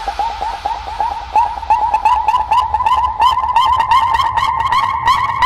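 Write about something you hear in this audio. Fast electronic dance music plays loudly with a pulsing beat.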